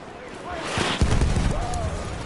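A shell explodes with a heavy boom nearby.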